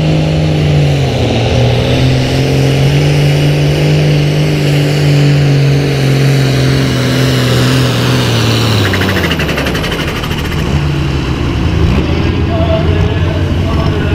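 A tractor engine roars loudly at high revs, then winds down.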